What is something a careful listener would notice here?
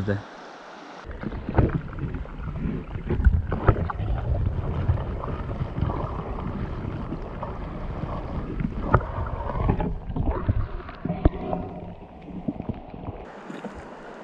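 Water gurgles and thumps, heard muffled from underwater.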